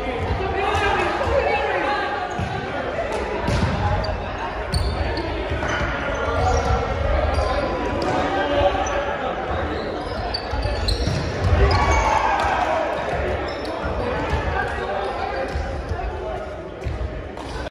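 A volleyball thumps off hands and the floor.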